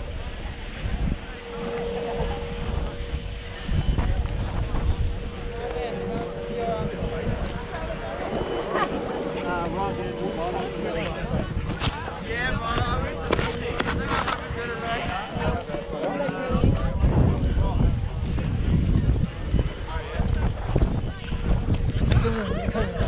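Wind buffets against a microphone outdoors.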